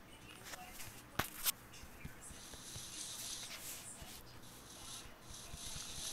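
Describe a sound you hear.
A shovel digs into grass with short crunching thuds.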